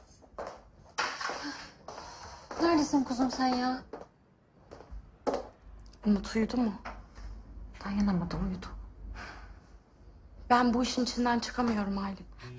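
Another young woman answers quietly and with strain.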